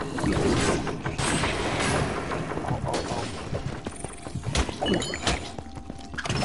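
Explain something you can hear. Weapons clash and strike in a fast fight.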